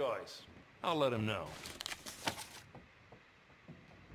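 A paper page flips over.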